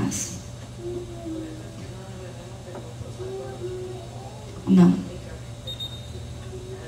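A woman speaks softly and haltingly into a microphone.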